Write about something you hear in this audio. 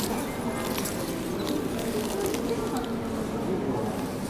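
A man chews food with his mouth close by.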